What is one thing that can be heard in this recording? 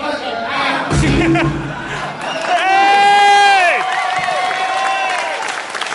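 A live band plays loudly in a large hall.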